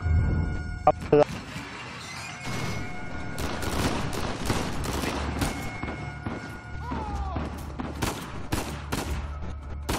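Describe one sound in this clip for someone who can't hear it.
Gunshots ring out in quick bursts, echoing.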